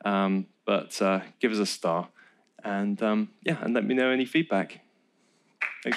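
A man speaks through a microphone to an audience.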